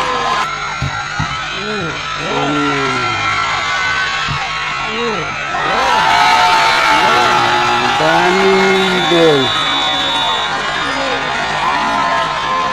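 A large crowd of spectators chatters and cheers outdoors.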